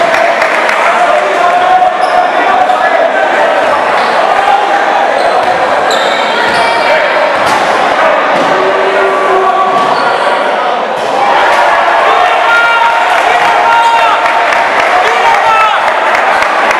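A large crowd cheers and chants in an echoing hall.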